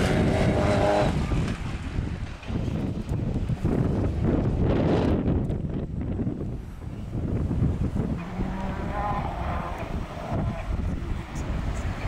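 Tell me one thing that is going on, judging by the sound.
Rally car engines roar in the distance, revving hard.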